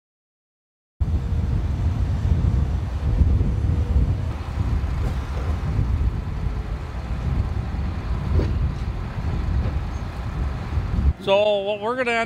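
A dredge barge's machinery rumbles steadily outdoors in wind.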